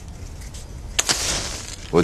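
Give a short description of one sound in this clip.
A match strikes and flares.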